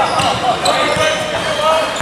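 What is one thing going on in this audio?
A basketball bounces on a gym floor.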